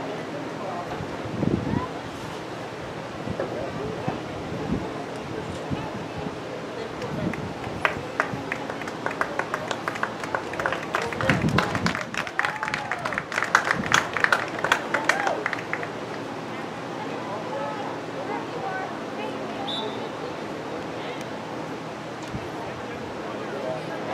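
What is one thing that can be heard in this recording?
Young women shout to each other far off across an open field.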